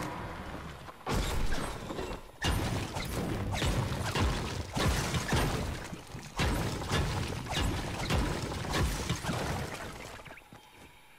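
A pickaxe strikes stone and metal in quick, repeated blows.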